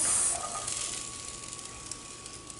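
A spatula scrapes and stirs food in a pan.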